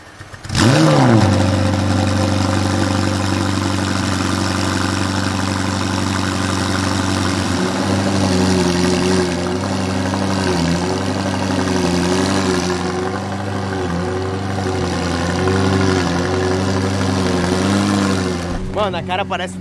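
A sports car engine idles with a loud, deep rumble.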